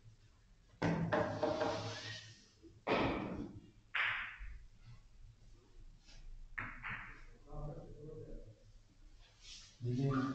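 Billiard balls knock against each other and the cushions.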